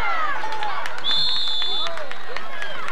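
A referee's whistle blows in short, high blasts.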